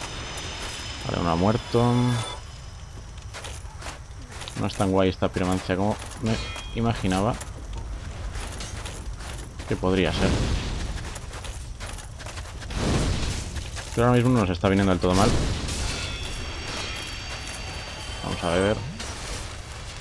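A young man talks into a microphone with animation.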